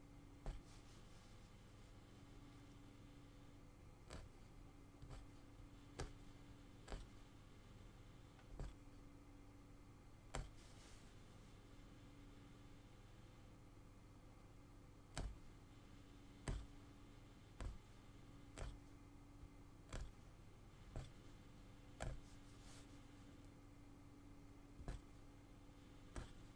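A needle tool punches through taut cloth with sharp clicks.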